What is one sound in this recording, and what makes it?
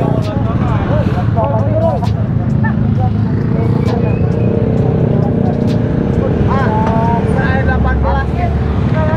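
Motorcycle engines idle and rumble close by.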